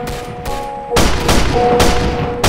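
Rapid gunshots ring out in a video game.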